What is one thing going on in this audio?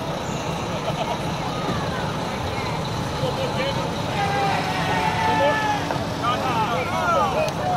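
A group of teenagers chatter and call out nearby.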